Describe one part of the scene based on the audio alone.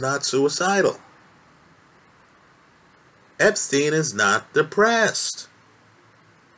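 A man speaks calmly and close up, with pauses.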